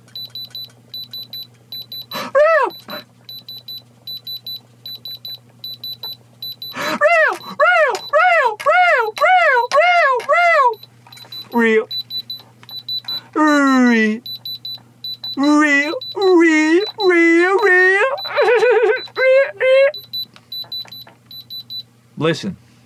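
A diamond tester beeps rapidly and steadily.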